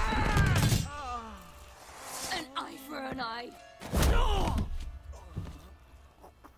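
A young man exclaims loudly close to a microphone.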